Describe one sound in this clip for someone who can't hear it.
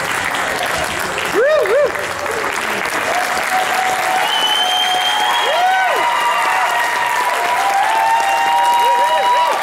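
A large crowd applauds steadily in an echoing hall.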